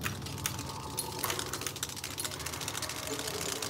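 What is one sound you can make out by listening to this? Small mechanical creatures skitter and click on a hard floor.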